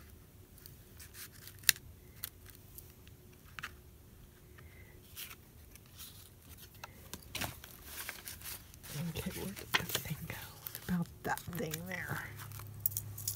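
Paper rustles and crinkles as it is pressed down by hand.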